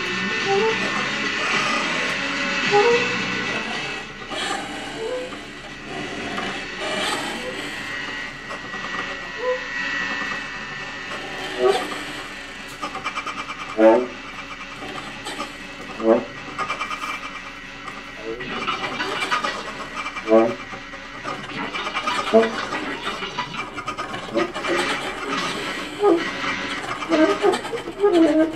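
Electronic sounds bleep, warble and crackle.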